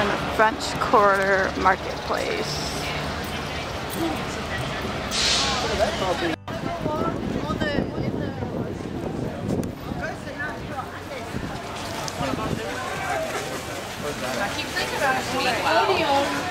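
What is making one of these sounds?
A crowd of men and women chatters nearby, outdoors.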